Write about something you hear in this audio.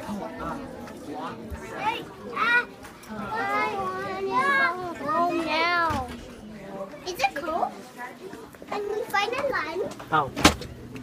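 A young girl talks excitedly close by.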